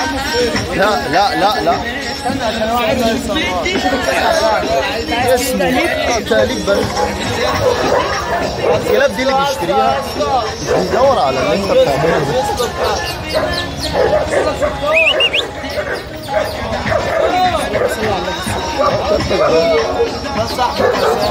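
A crowd of men talks all around, close by.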